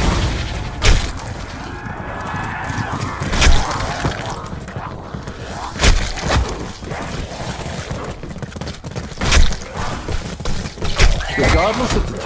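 A melee weapon thuds into bodies.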